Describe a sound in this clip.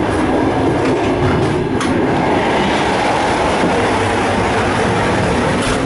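A train rumbles and roars loudly along the track.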